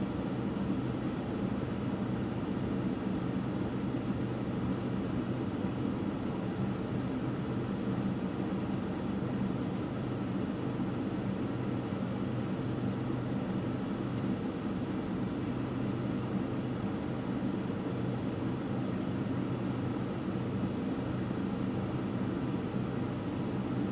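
A car engine idles steadily, heard from inside the car.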